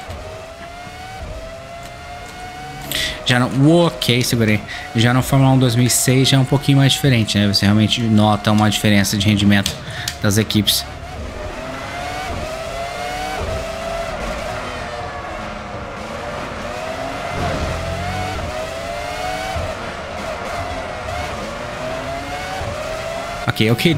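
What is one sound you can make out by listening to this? A racing car engine whines at high revs, rising and dropping in pitch as it shifts gears.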